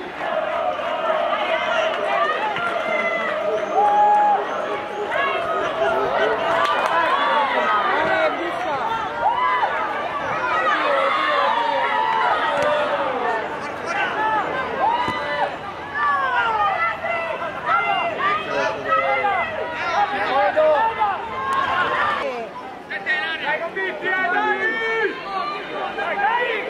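Young men shout to each other across an outdoor field.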